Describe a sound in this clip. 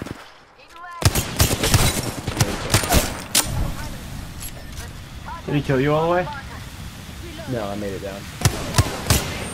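Gunshots crack in rapid bursts.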